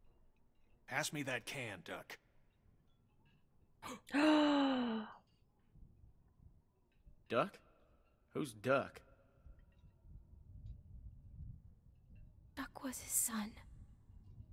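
A young woman talks close to a microphone, with pauses.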